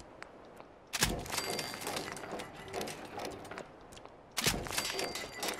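A burst of mechanical clanking and whirring plays as an item is built.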